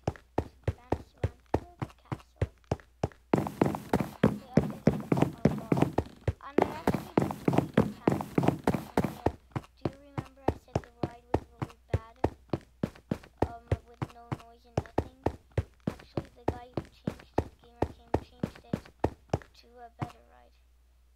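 Quick footsteps tap steadily on hard ground.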